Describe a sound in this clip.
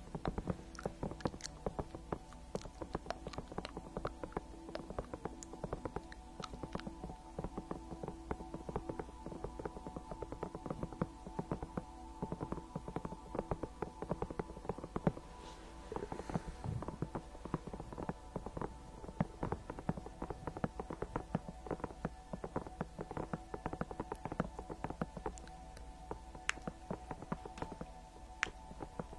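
Fingernails tap and scratch on a hollow plastic toy close to a microphone.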